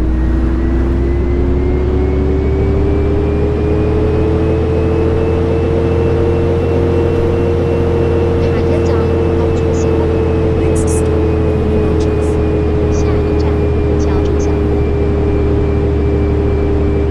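A bus engine hums steadily and its pitch rises and falls slowly as it drives.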